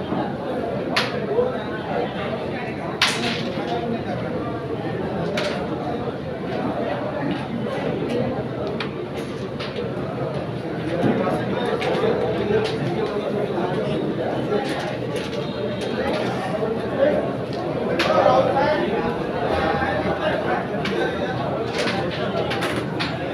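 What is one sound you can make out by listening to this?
Carrom pieces click sharply as they are struck across a wooden board.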